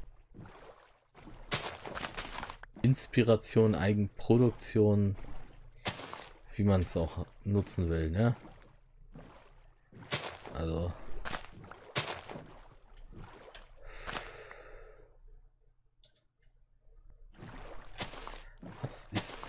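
Oars splash softly as a small boat is rowed through calm water.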